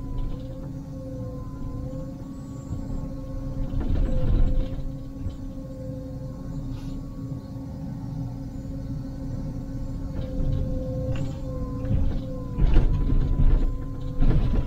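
A hydraulic excavator arm whines as it moves.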